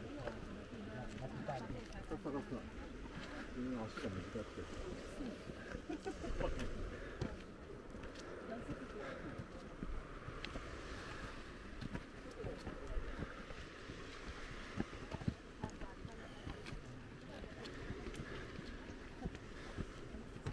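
Footsteps scuff and tap on stone steps close by.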